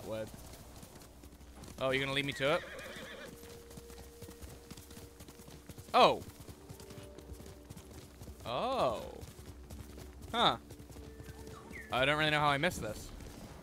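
Hooves gallop over soft ground.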